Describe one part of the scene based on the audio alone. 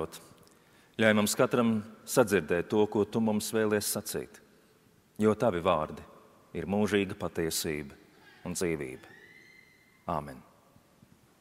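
A man speaks calmly and slowly into a microphone in a large echoing hall.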